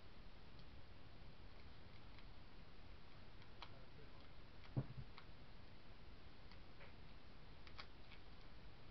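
Paper rustles and crinkles between fingers.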